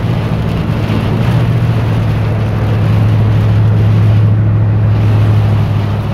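Heavy rain drums hard on a car's windscreen and roof.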